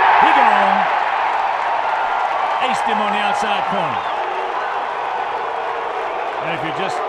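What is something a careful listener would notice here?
A large crowd murmurs and cheers steadily outdoors.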